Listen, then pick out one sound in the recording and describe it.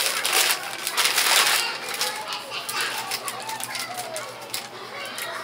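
Plastic packaging crinkles in a man's hands.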